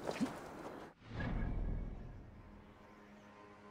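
Water splashes as something plunges into it.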